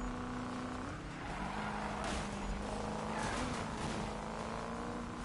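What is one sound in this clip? Tyres screech and a car scrapes past other cars.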